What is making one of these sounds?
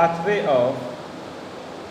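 A man speaks briefly, close to the microphone.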